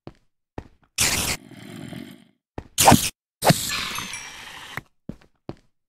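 A sword strikes a spider with sharp hits.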